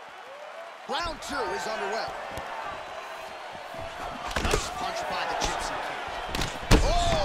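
Punches thud against a body.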